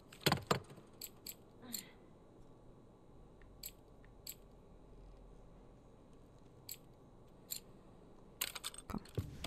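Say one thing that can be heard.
Menu clicks tick softly.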